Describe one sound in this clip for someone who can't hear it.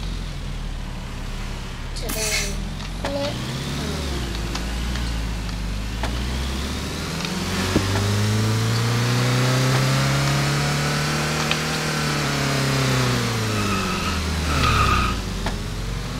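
Tyres screech as a game car drifts around corners.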